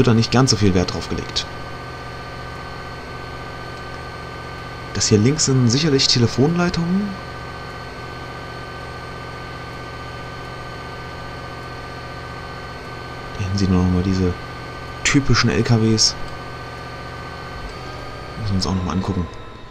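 A diesel locomotive engine drones steadily.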